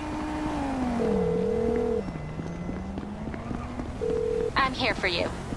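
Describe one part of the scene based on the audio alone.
A phone's ringing tone beeps through a handset.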